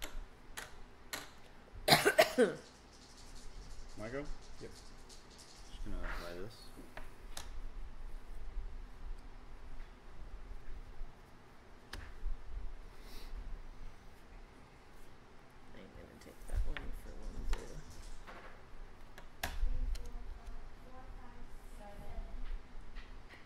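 Game pieces and cards click and slide on a wooden table.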